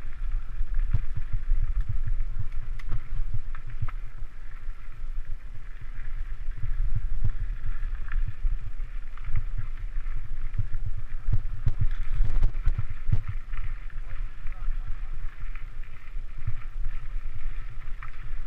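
Bicycle tyres rattle and crunch over a rocky dirt trail.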